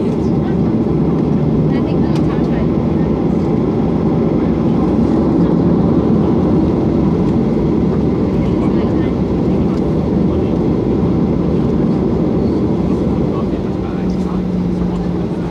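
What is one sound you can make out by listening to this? An airliner's wheels rumble over the ground as it taxis.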